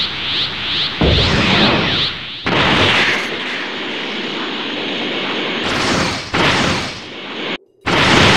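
An energy blast whooshes and roars.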